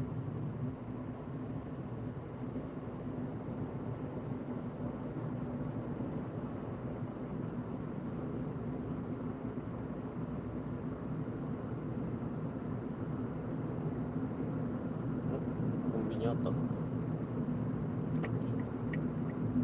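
A car engine hums steadily from inside the car as it drives along a road.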